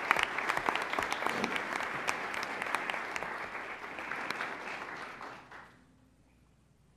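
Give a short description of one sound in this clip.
An audience claps and applauds in a large room, then the clapping dies away.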